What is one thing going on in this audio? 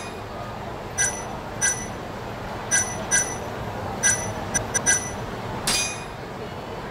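Short electronic menu beeps chime several times.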